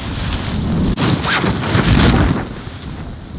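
A parachute snaps open with a loud flapping whoosh.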